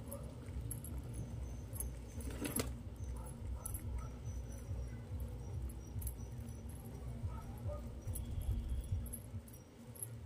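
Pigeons peck at grain on a hard floor with light taps.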